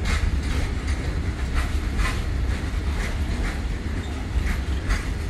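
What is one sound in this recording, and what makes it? Train wheels clack rhythmically over the rail joints.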